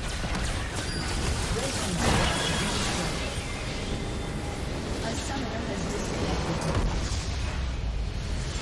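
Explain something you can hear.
Fantasy battle sound effects clash, burst and crackle continuously.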